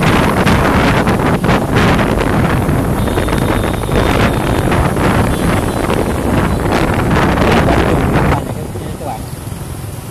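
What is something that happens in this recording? Motorbike engines hum along a busy road.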